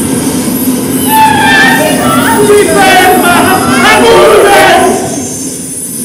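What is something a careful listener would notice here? Several men and women sing together loudly.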